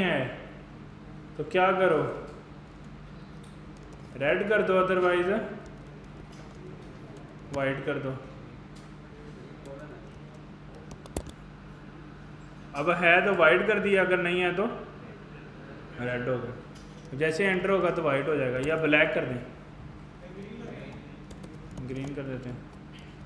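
A young man speaks calmly into a close microphone, in short bursts.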